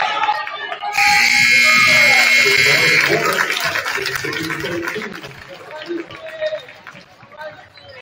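A crowd cheers and claps in a large echoing gym.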